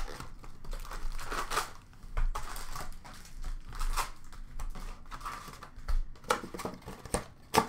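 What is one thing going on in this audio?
Hands tear open a foil trading card pack with a crinkling rip.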